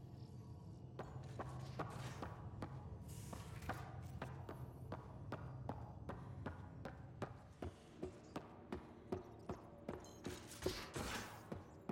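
Footsteps tap steadily on a hard metal floor.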